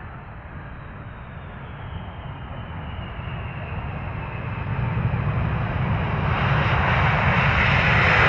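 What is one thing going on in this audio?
Tyres rumble on a runway.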